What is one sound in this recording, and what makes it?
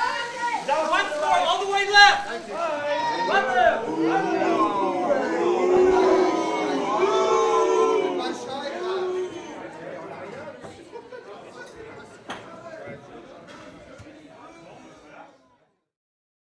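A crowd of men and women talk and call out nearby.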